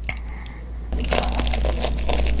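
A young girl bites into a crunchy fried snack.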